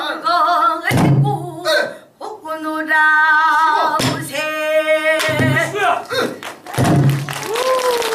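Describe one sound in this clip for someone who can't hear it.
A barrel drum is struck with sharp beats.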